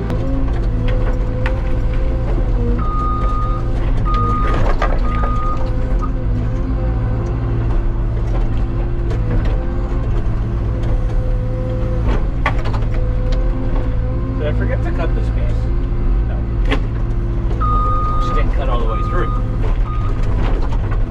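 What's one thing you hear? A heavy diesel engine drones steadily from close by.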